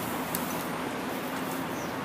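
A bunch of keys jingles.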